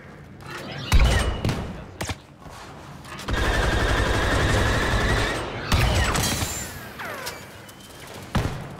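Blaster shots fire in sharp bursts.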